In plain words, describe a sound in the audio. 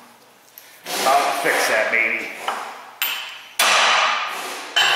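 A hammer strikes metal with sharp blows.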